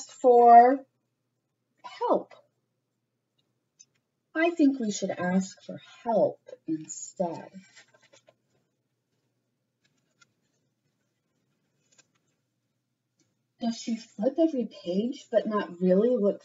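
A young woman speaks with animation and reads aloud, close to the microphone.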